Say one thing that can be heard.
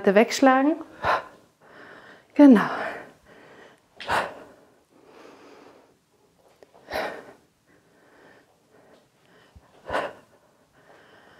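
A woman exhales sharply in an even rhythm.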